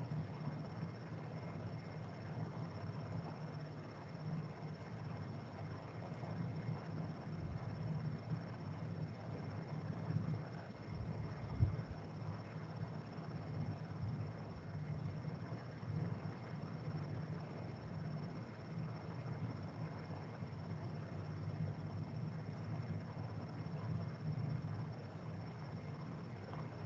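A man speaks calmly through a microphone over an online call.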